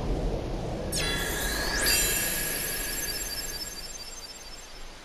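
A magical chime shimmers and rings out.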